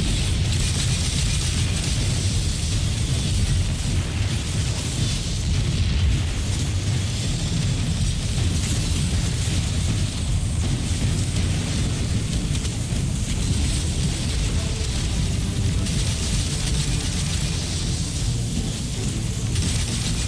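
Rapid gunfire and energy blasts crackle in a video game.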